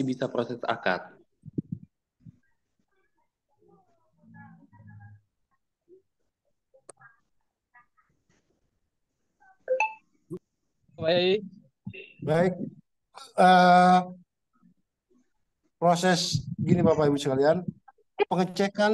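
A man speaks with animation over an online call, in bursts with pauses.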